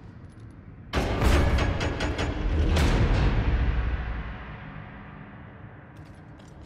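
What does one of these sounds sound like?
A heavy mechanical platform rumbles and grinds as it moves.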